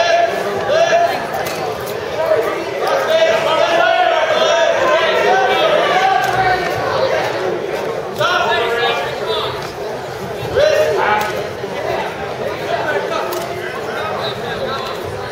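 Wrestlers' bodies thud and scuffle on a mat.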